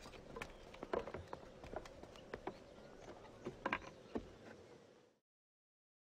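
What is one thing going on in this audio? Footsteps tap on stone paving nearby.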